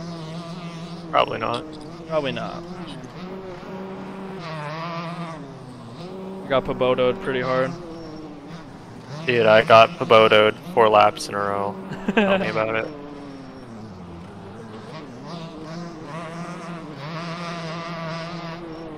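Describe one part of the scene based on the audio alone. A dirt bike engine revs up and down as it rides.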